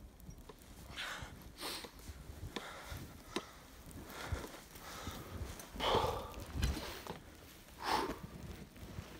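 A young man speaks close by, a little out of breath.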